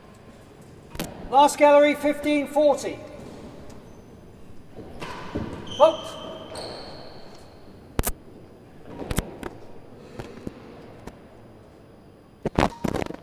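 A racket strikes a ball with sharp cracks.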